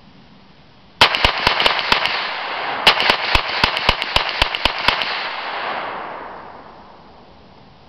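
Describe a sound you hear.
Gunfire echoes off a treeline and fades.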